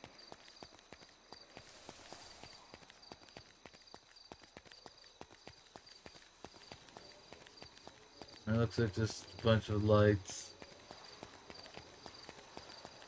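Footsteps run quickly and steadily on pavement.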